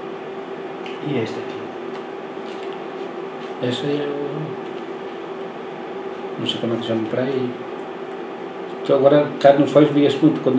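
An older man speaks calmly and close to a microphone, in short bursts.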